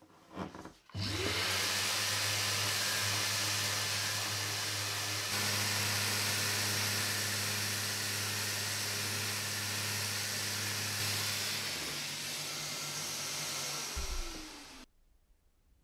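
An electric sander whirs steadily against wood, then winds down.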